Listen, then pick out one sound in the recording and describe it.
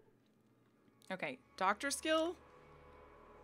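A young woman speaks briefly and with animation into a nearby microphone.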